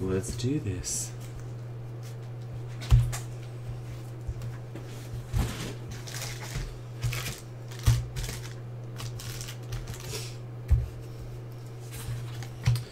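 Plastic card wrappers crinkle and rustle as hands open them.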